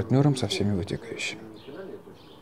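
A man speaks with emphasis, close by.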